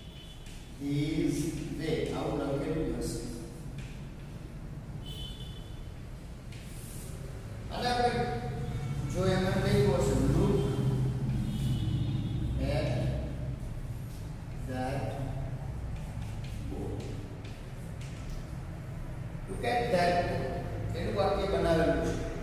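A man speaks calmly and clearly, as if teaching.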